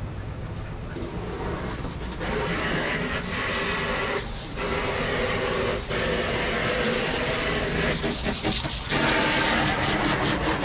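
Water sprays from a hose and splashes onto the ground.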